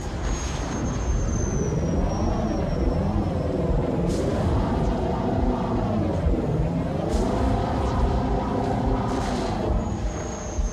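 A hovering vehicle's engine hums and whines, rising and falling in pitch.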